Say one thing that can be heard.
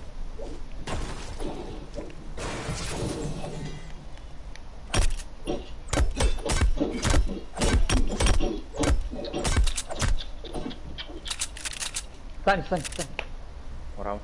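Pickaxes strike and smash building pieces.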